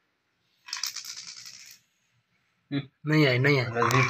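Dice clatter on a tiled floor.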